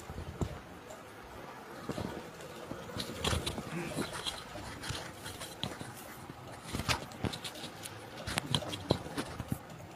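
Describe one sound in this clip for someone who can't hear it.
An elderly man speaks quietly at a distance.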